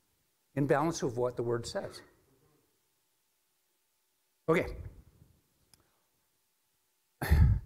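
A middle-aged man speaks with animation into a microphone in a reverberant hall.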